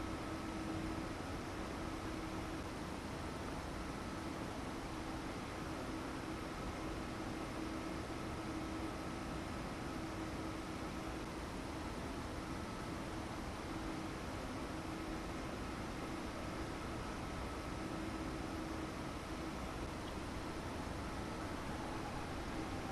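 A stationary electric train hums steadily.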